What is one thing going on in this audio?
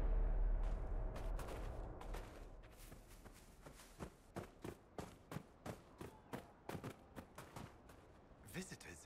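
Footsteps crunch steadily through soft sand.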